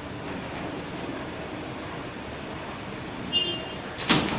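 Elevator doors slide shut.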